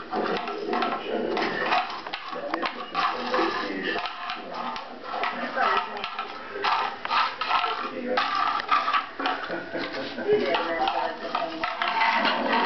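A small tin can scrapes and rattles across a tile floor.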